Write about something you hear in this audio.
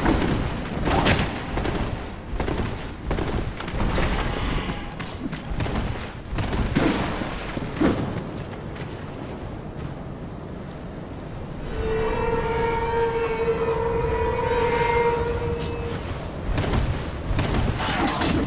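Armoured footsteps clank on the ground.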